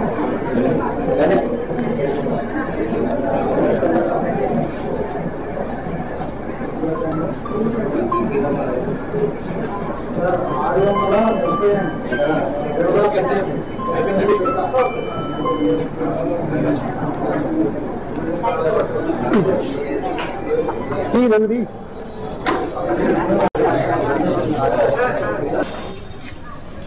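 A crowd of men and women chatters and calls out loudly nearby.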